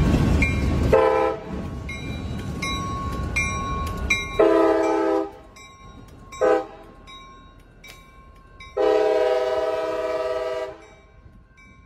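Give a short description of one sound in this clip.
A locomotive horn blasts loudly several times.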